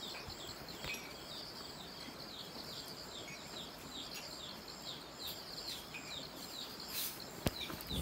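Rain falls steadily on trees outdoors.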